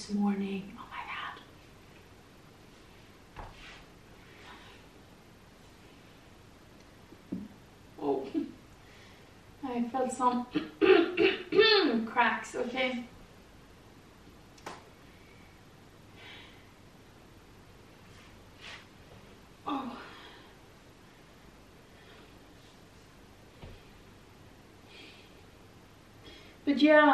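A young woman speaks calmly, close by, in short bursts.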